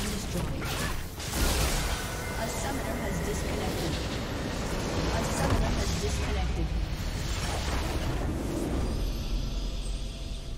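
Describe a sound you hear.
Spell effects clash and crackle in a busy battle in a video game.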